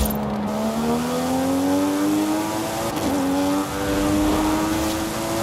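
A sports car engine revs steadily higher as the car accelerates.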